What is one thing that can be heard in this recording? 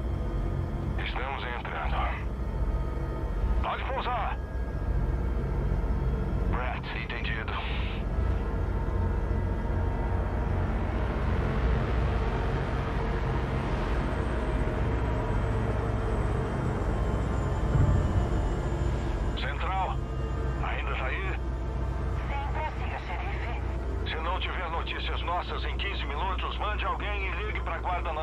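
Men speak calmly over a headset radio.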